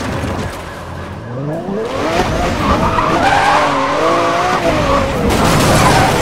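A car engine revs up and roars at high speed.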